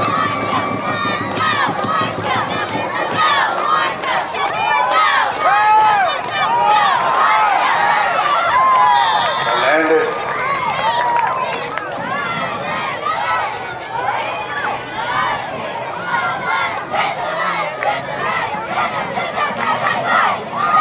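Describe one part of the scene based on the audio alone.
A crowd of young men shouts and cheers close by, outdoors.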